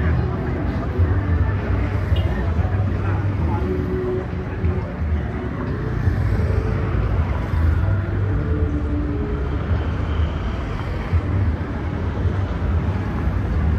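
A motorbike engine hums along the street.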